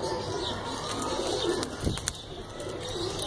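A pigeon flaps its wings in flight.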